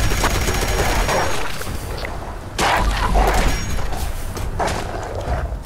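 A heavy gun fires in loud, booming bursts.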